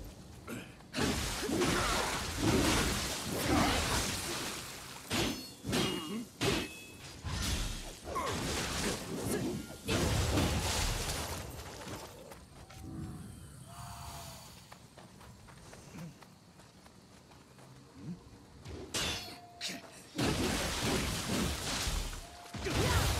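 Swords clash and slash in a game fight.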